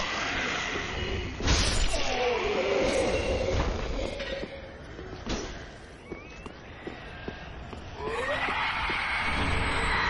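Armoured footsteps clatter on stone.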